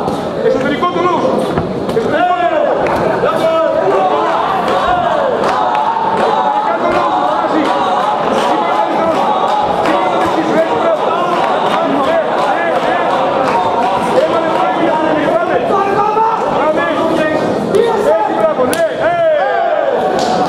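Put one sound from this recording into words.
A crowd shouts and cheers loudly in a large hall.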